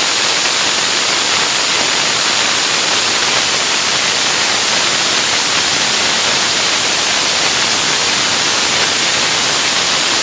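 Firecrackers crackle and pop in a rapid, dense barrage.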